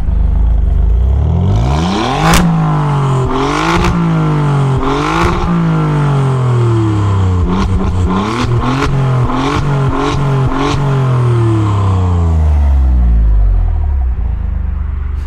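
A car engine revs hard again and again, roaring loudly through the exhaust.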